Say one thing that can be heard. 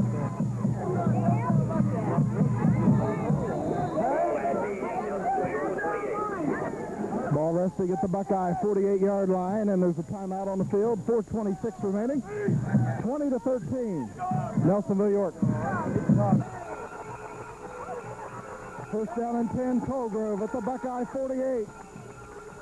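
A crowd cheers and shouts from the stands outdoors.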